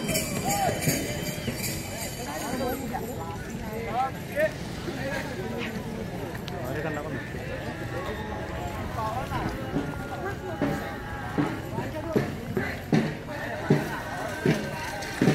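Several men chatter and call out nearby outdoors.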